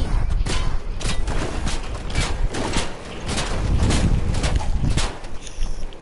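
A small cart engine hums as the cart drives over grass.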